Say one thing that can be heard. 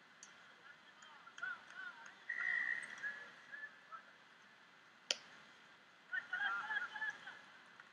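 Rugby players shout calls to each other outdoors.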